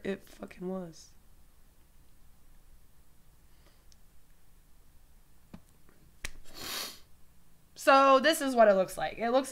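A woman speaks close to a microphone, in a calm, conversational tone.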